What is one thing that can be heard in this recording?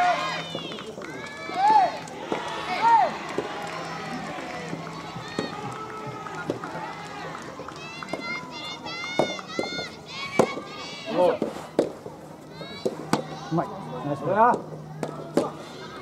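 Tennis balls are struck with sharp racket pops.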